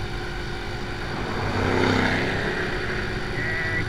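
A car passes close by with a brief swell.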